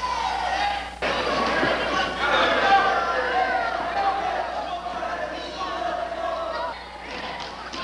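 A man shouts with animation in a large echoing gym.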